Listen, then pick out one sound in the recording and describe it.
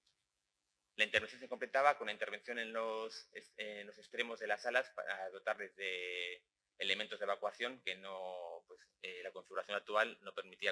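A man speaks calmly into a microphone.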